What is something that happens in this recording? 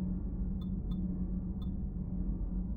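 Short electronic menu ticks sound as a selection changes.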